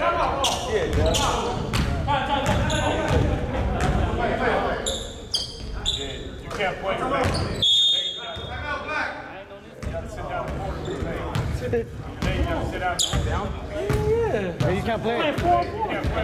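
Young men talk and call out nearby.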